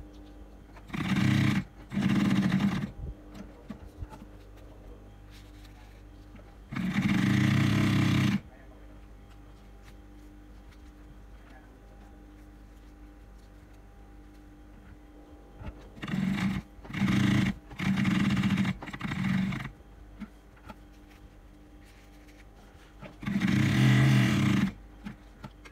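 A sewing machine runs in short bursts, whirring and clattering.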